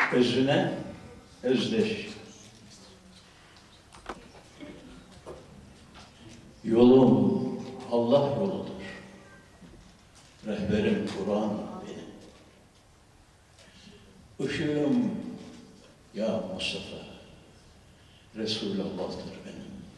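An elderly man sings slowly through a microphone in a hall with reverberation, in long drawn-out phrases with pauses between them.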